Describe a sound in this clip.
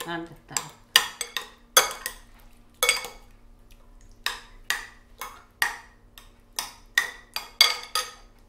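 Metal utensils clink and scrape against a ceramic bowl in quick, uneven taps.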